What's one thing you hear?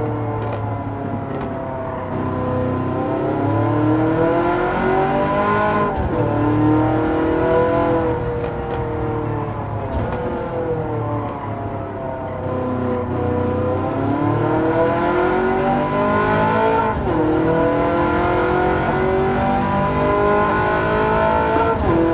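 A car engine revs up and down through the gears, rising in pitch and dropping at each shift.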